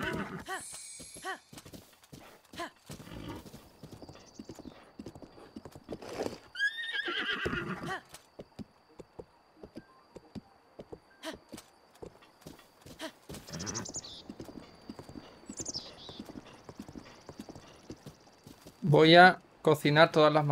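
A horse's hooves gallop over grass.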